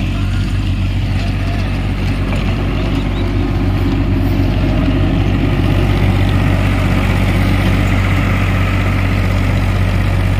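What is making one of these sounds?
A tractor engine runs with a steady low rumble.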